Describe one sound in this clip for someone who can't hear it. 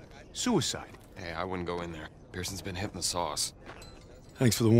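A man answers with animation nearby.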